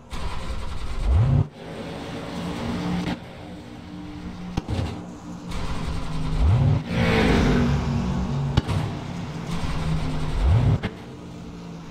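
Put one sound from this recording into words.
A race car engine revs up in short bursts.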